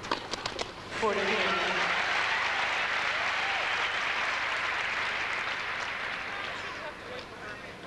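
A large crowd applauds loudly in an echoing hall, then fades.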